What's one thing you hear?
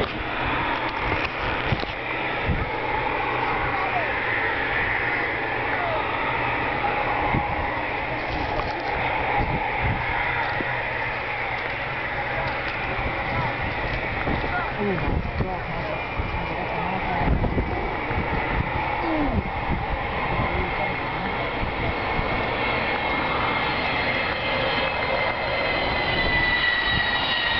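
A jet aircraft roars overhead, its engines growing louder as it approaches.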